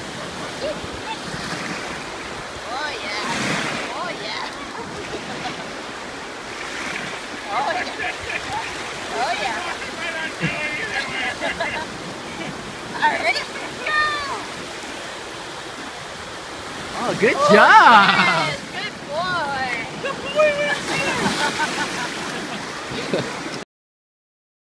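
Waves wash onto a shore.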